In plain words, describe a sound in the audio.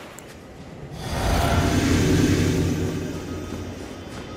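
A deep magical rumble swells and then slowly fades.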